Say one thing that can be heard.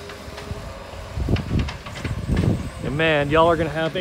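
A small loader's engine rumbles in the distance.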